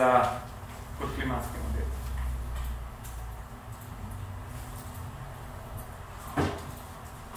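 A young man speaks calmly, with pauses.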